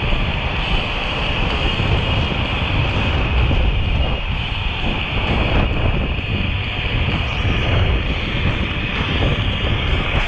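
Bicycle tyres hum on pavement.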